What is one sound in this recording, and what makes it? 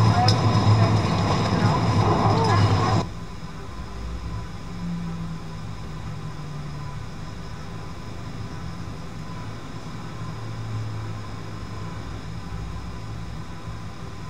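Jet engines hum steadily at idle.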